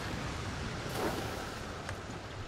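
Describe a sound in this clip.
A gun fires a shot.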